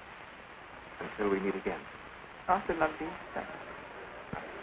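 A woman speaks briefly and warmly.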